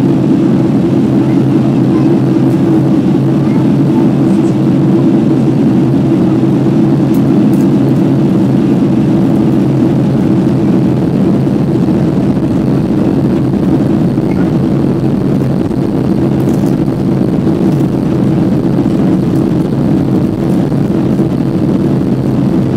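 Jet engines roar steadily and loudly with a deep hum, heard from inside an airliner cabin.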